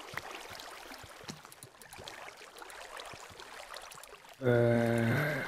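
Water flows and trickles steadily.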